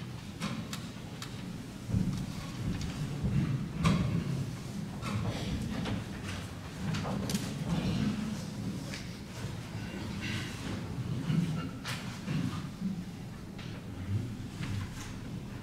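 Footsteps and shuffling sound on a wooden floor in a large room.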